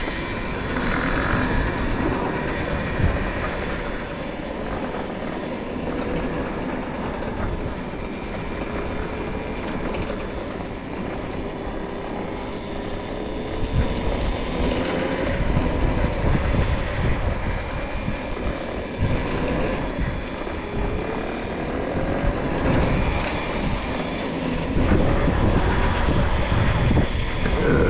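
Wind rushes past close by outdoors.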